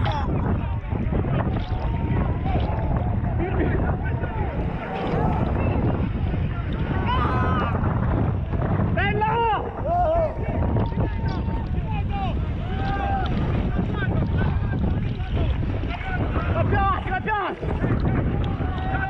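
Rough waves splash and crash against a boat's hull.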